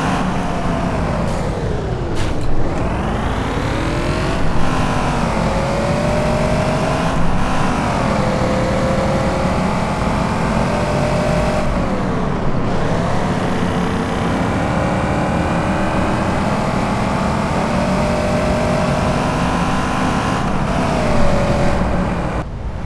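A car engine roars at high speed, its pitch climbing and then dropping sharply with each gear change.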